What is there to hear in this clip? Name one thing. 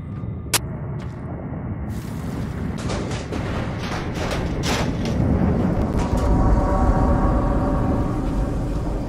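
Flames crackle and hiss close by.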